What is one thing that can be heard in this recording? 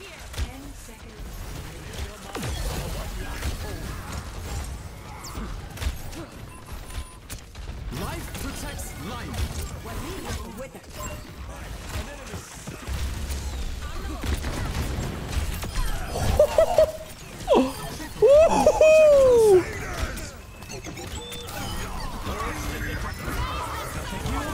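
Game gunfire and ability blasts crackle and boom throughout.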